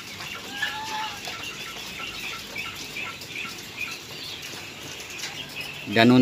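Small birds chirp softly and repeatedly close by.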